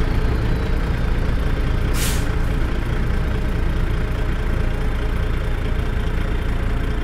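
A truck engine idles with a deep, steady rumble.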